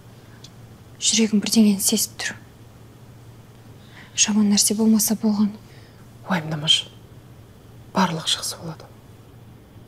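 A middle-aged woman speaks anxiously, close by.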